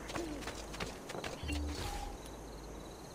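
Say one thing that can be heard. Footsteps run over cobblestones.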